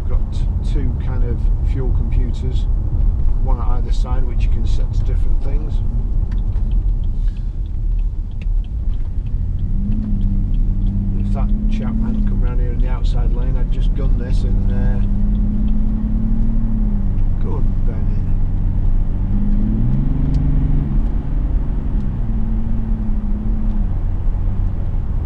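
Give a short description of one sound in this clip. Tyres rumble low and steady on the road.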